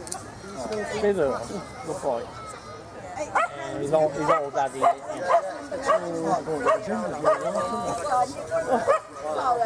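A man talks with animation outdoors, heard from a little distance.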